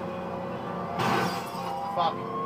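A car crashes into something with a loud bang.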